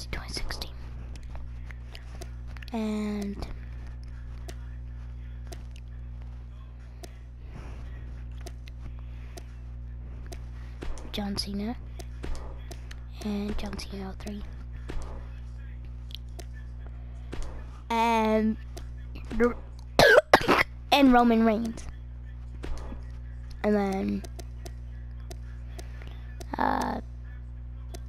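Short electronic clicks tick repeatedly as a game menu scrolls.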